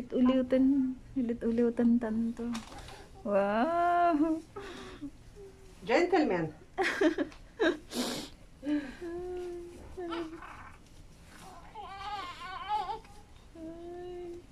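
A newborn baby cries loudly close by.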